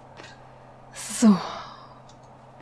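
Small feet land on a hard surface with a thud.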